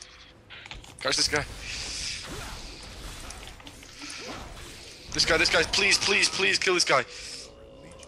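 Spell effects whoosh and crackle during a fight in a game.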